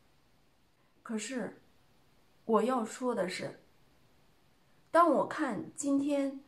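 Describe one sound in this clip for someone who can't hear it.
A woman speaks calmly into a close microphone, in short phrases.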